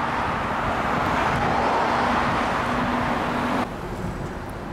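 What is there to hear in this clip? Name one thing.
A bus engine rumbles as it drives past.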